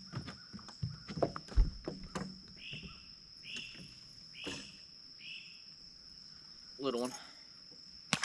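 A man talks calmly nearby, outdoors.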